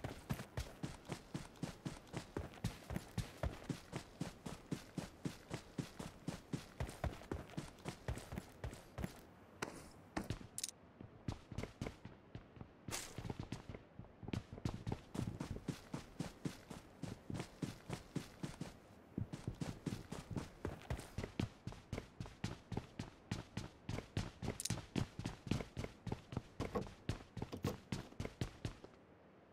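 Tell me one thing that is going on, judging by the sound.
Quick running footsteps thud on grass and floors.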